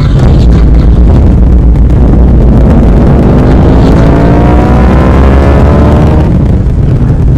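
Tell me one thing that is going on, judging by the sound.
A vehicle engine roars and rises in pitch as it speeds along.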